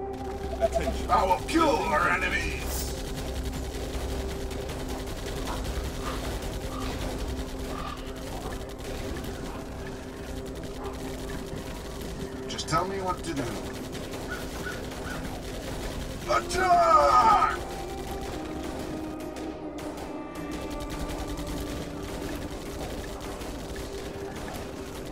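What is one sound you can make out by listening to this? Guns fire in short bursts with small explosions.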